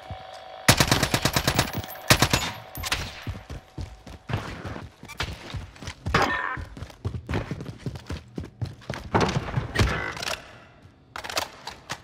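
Footsteps thud quickly on hard ground.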